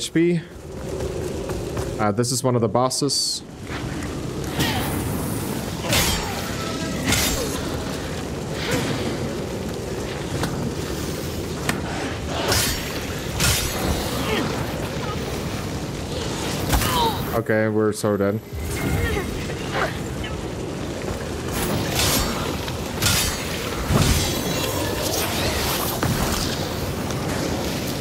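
Fire crackles and roars steadily.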